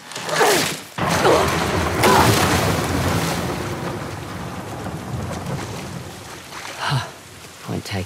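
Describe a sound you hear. Water sloshes and splashes as someone swims and wades.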